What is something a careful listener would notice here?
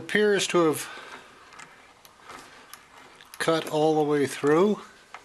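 A hand tool clicks faintly as it turns a bolt in metal.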